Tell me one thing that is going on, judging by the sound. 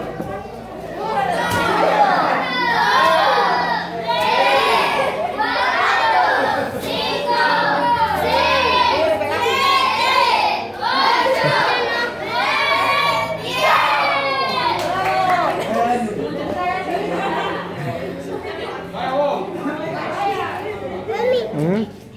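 A group of children sing together loudly, close by.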